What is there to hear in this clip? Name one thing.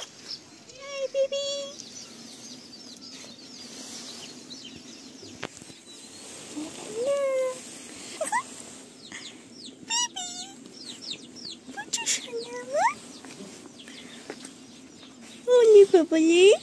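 A puppy whimpers and yelps in short, high cries.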